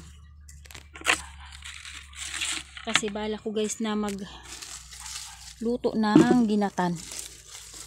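A knife scrapes and digs into dry soil.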